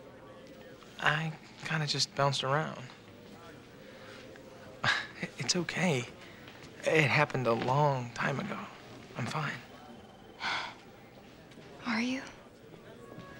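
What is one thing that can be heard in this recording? A man speaks calmly and warmly close by.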